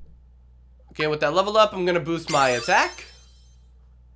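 A short cheerful jingle plays for a level up in a video game.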